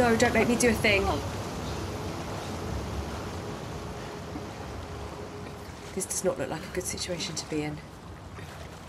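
Water sloshes and splashes as someone swims.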